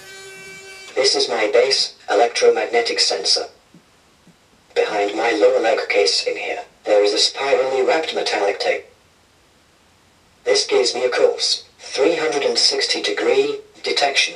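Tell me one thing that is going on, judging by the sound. A robot speaks in a flat synthetic voice close by.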